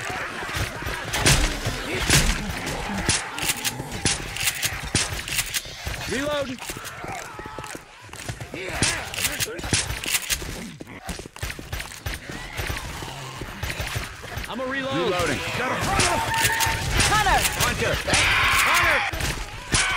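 Creatures shriek and growl nearby.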